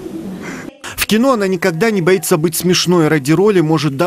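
A woman sings through a loudspeaker.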